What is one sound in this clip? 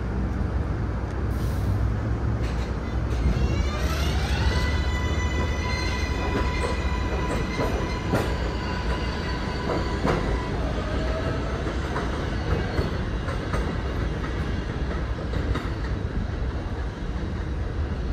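Train wheels rumble and clack on the rails, fading into the distance.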